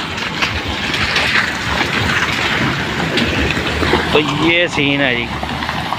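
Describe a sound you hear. Tyres splash and crunch through a wet, muddy road.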